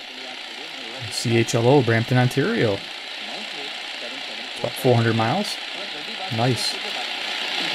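A man's voice comes in snatches through a radio loudspeaker.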